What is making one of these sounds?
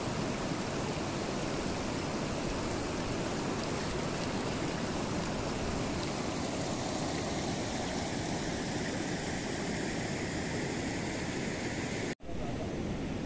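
A shallow stream rushes steadily over rocks close by.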